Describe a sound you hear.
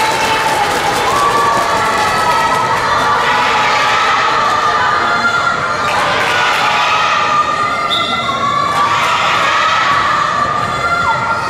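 A crowd of young women shouts and chants nearby in a large echoing hall.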